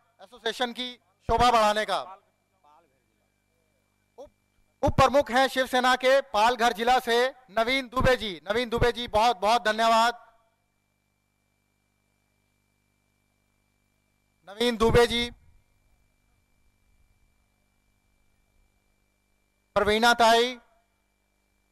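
A young man speaks into a microphone over a loudspeaker, in short bursts with long pauses.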